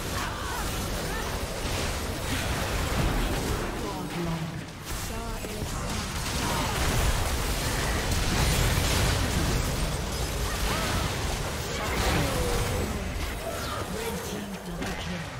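Video game battle effects of spells and blows crackle and burst continuously.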